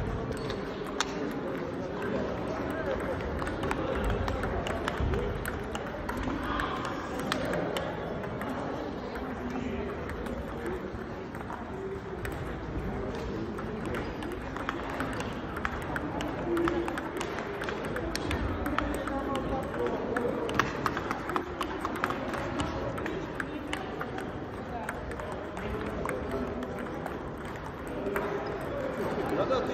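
Table tennis balls click sharply on paddles and tables.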